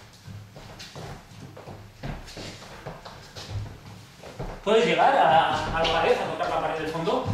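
Footsteps shuffle and thud on a wooden floor.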